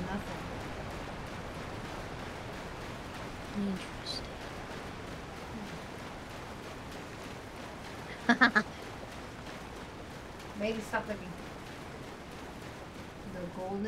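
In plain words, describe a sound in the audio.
Feet splash through shallow water.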